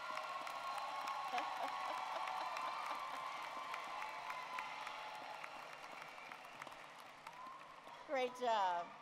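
An audience claps and cheers in a large echoing hall.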